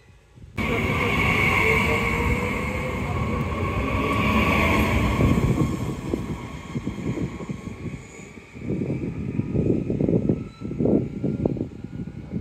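A train rolls past close by and moves away.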